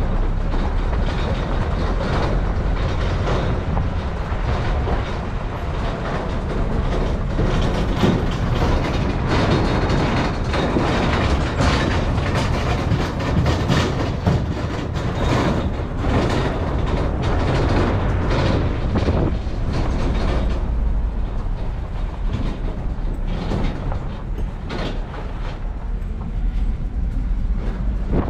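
Tyres crunch and rattle over a bumpy dirt road.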